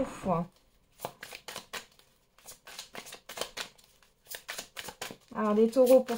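Playing cards riffle and tap as a deck is shuffled by hand.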